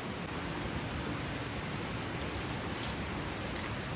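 Dry palm strips rustle and crackle as they are split by hand.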